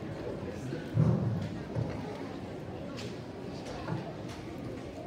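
A large audience murmurs and chatters in an echoing hall.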